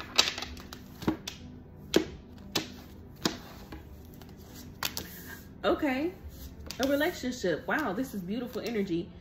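Playing cards shuffle and slide against each other.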